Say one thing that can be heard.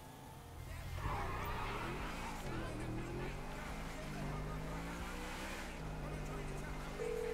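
A car engine hums and revs as a car speeds along a road.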